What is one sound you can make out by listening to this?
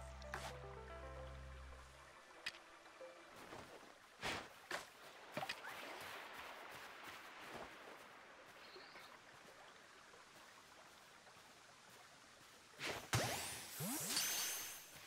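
Footsteps patter over grass.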